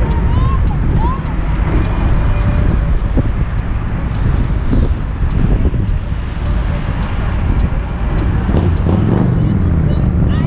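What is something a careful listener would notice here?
Wind rumbles loudly against a moving microphone.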